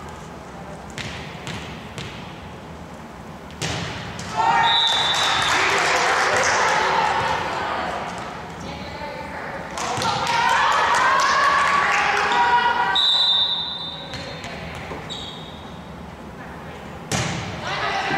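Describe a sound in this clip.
A ball thumps off hands and arms in a large echoing gym.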